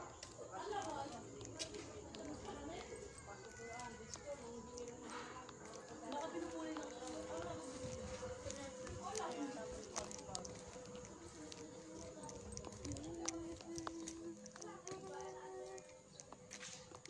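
A woman talks close by, calmly.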